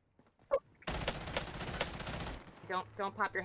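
Rapid gunfire bursts loudly in a video game.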